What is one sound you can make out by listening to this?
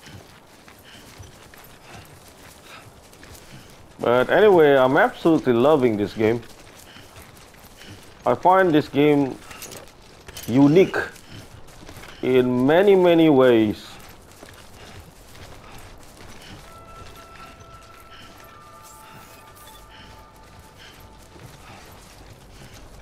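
Footsteps tread softly through grass.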